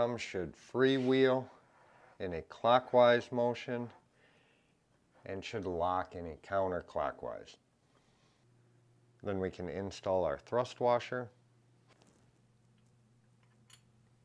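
Metal parts clink and click together.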